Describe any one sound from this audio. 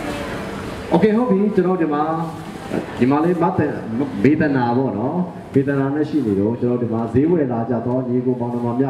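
A man sings into a microphone through a loudspeaker.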